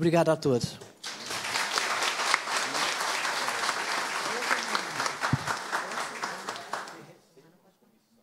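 A crowd applauds in a room.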